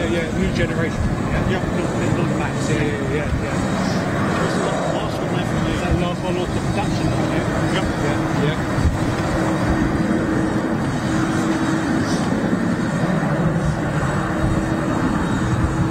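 A jet engine whines and roars steadily as an airliner taxis past.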